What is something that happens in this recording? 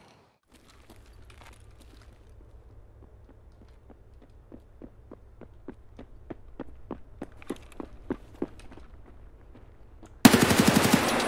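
Footsteps tread quietly on a hard floor.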